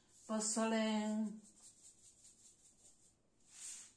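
A woman shakes salt from a shaker into a pot.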